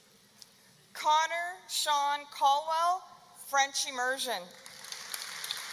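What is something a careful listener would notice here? An older woman announces through a loudspeaker in a large echoing hall.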